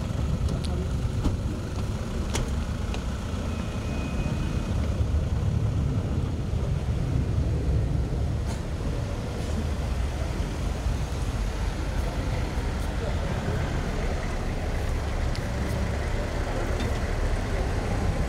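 Car engines hum as a line of vehicles drives slowly past.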